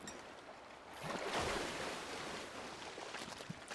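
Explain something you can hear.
Water splashes as a hooked fish thrashes at the surface.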